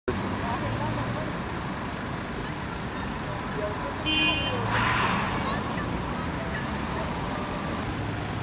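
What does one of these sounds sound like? A car fire crackles and hisses steadily outdoors.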